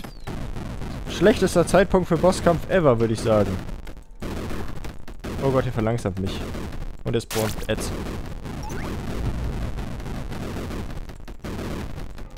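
Explosions burst and rumble in a video game.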